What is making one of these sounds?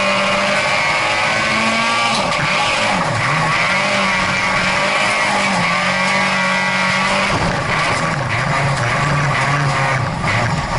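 Gravel and dirt rattle against the underside of a car.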